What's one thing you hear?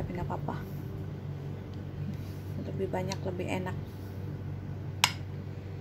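A spoon spreads thick cream across a glass dish with soft, wet scraping.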